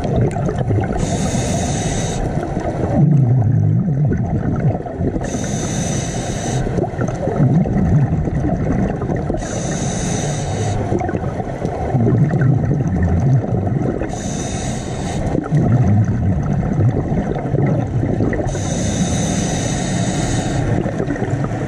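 Air bubbles rush and gurgle from a scuba diver's regulator in regular bursts.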